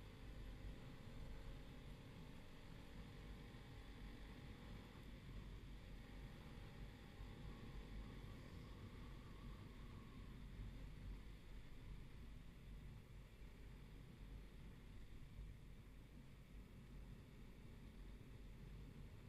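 A motorbike engine hums steadily while riding.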